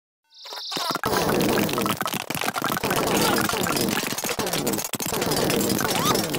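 Video game plants rapidly fire popping shots.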